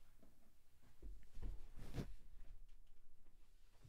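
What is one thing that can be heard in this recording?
Clothing rustles and brushes close by.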